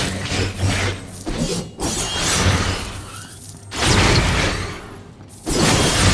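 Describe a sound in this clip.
Magic blasts crackle and boom in a game.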